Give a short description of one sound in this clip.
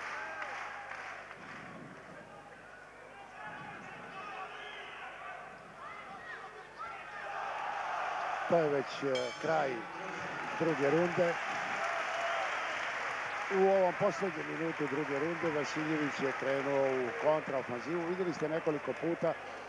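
A large crowd cheers and roars in an echoing indoor arena.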